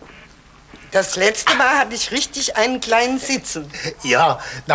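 An elderly woman speaks with animation.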